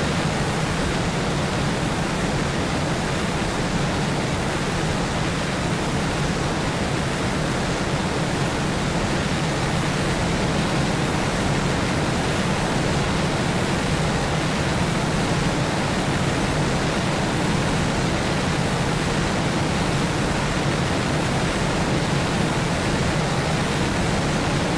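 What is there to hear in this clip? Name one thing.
A jet airliner roars steadily in flight.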